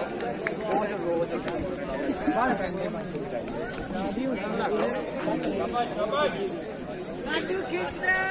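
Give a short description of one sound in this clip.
A crowd of young men talks and shouts outdoors nearby.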